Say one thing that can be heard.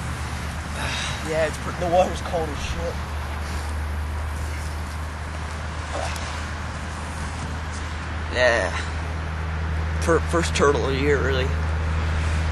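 A teenage boy speaks in short bursts close by.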